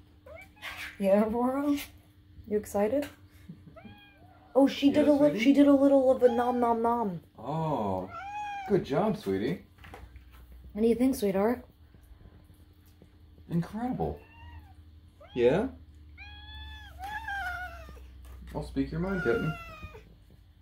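Cats meow loudly and insistently, close by.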